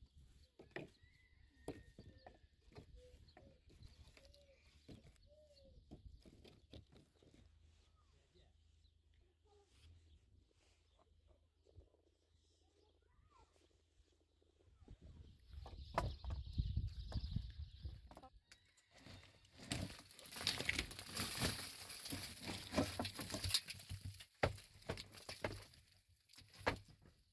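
Wooden poles knock and scrape against stones.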